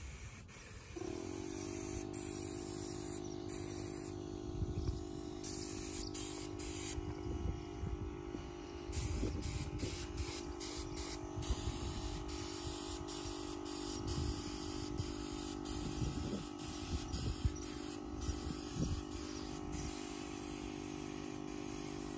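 A paint sprayer motor hums steadily.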